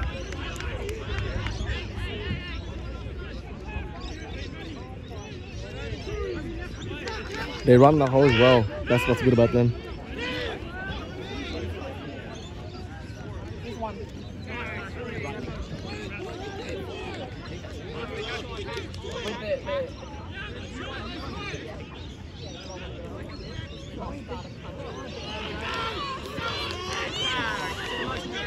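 Players call and shout to each other across an open field.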